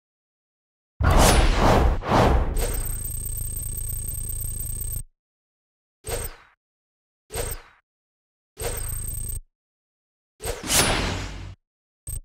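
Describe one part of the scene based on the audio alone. Game sound effects whoosh and chime as a score tallies up.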